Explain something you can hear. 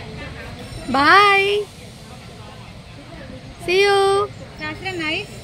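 A young child squeals excitedly.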